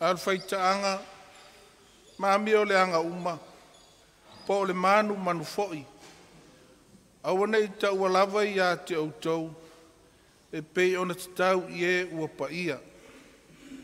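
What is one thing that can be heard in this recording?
An elderly man sings out in long phrases through a microphone.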